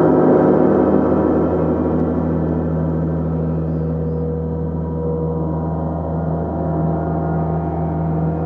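A large gong hums and rings with a deep, swelling tone.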